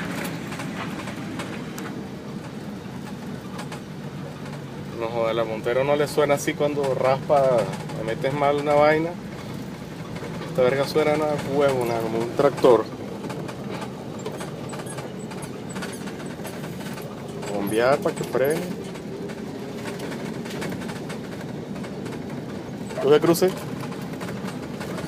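The engine of an old Nissan Patrol off-road vehicle hums.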